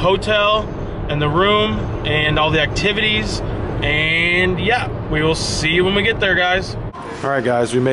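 A young man talks animatedly, close up.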